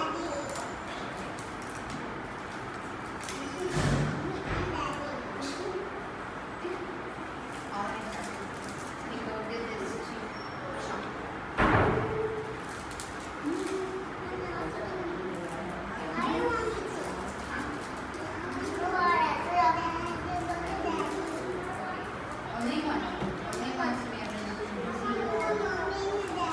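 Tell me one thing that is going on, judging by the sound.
Young children chatter in a room.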